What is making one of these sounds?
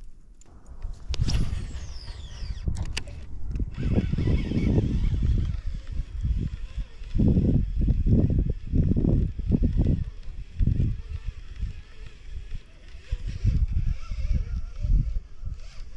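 Wind rumbles and gusts outdoors.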